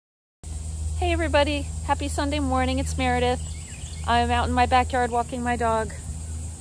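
An older woman talks calmly and close by.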